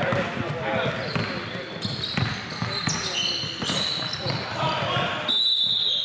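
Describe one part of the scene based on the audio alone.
A basketball bounces on a hard court, echoing in a large hall.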